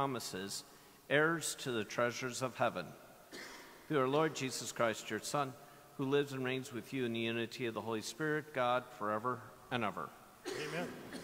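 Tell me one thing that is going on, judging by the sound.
A man chants a prayer through a microphone in a large echoing hall.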